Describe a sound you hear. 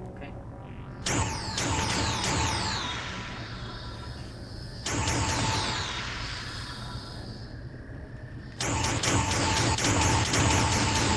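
Electronic game sounds burst in with quick falling whistling tones and a rushing swell.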